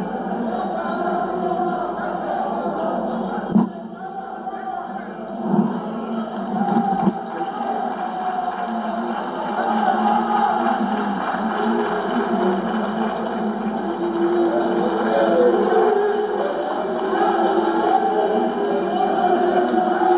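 Many men and women chatter and murmur at once in a large room.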